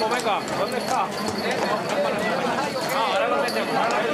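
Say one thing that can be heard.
Small bells jingle on a horse's harness.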